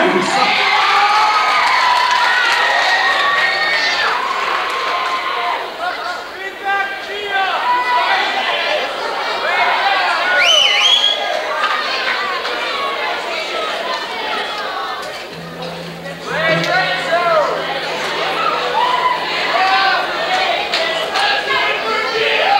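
Several men talk and call out loosely in a large echoing hall.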